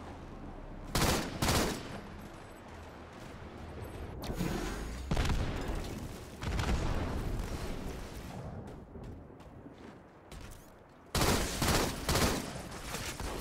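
A rifle fires loud shots in bursts.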